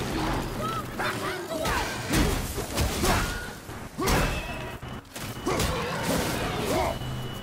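A creature lets out shrill, wavering screeches.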